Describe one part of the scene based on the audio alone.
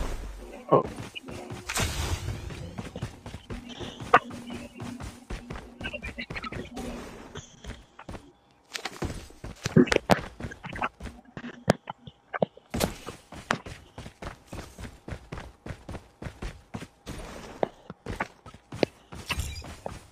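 Footsteps patter quickly on dry ground.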